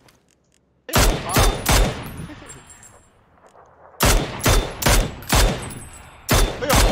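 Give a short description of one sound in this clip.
Rifle shots crack loudly in quick succession.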